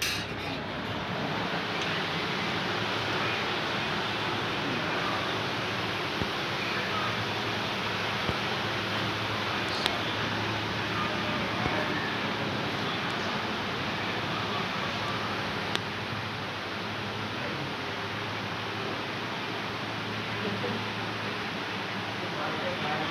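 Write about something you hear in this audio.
An air conditioner hums steadily indoors.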